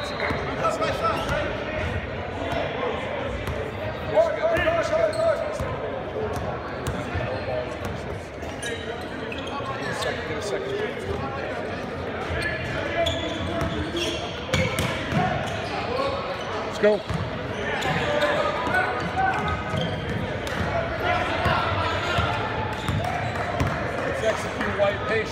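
A basketball is dribbled on a hardwood court in a large echoing gym.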